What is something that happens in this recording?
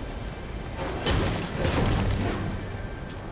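A pickaxe swings through the air with loud whooshes.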